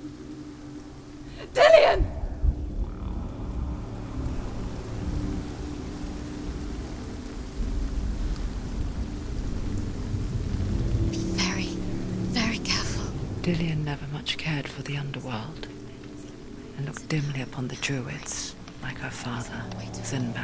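Rain falls steadily outdoors in wind.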